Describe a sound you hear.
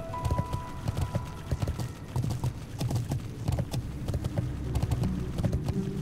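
Footsteps patter quickly along a dirt path.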